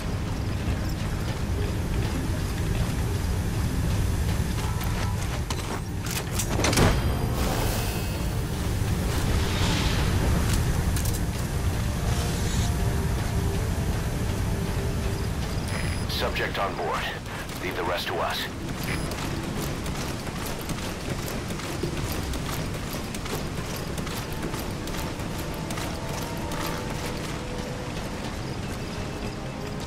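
Footsteps clank on metal stairs and walkways.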